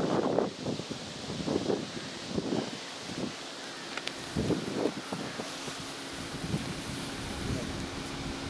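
An elderly man speaks close by outdoors.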